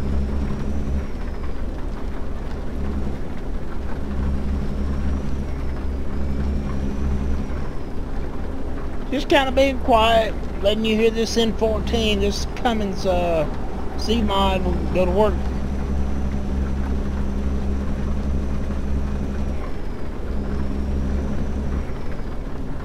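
A truck engine hums steadily while driving on a road.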